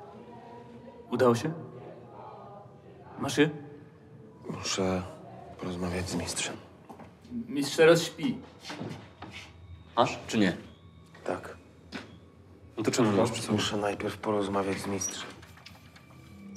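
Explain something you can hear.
A second man answers in a quiet, firm voice.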